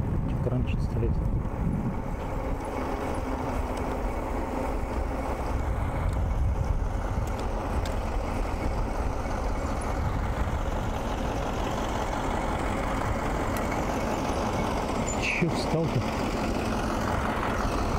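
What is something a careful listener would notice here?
Bicycle tyres roll steadily over asphalt.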